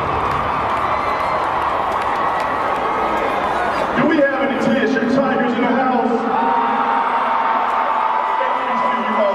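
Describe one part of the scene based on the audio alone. A marching band plays loudly in a large echoing stadium.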